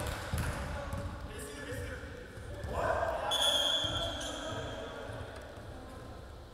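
Young men talk in an echoing hall.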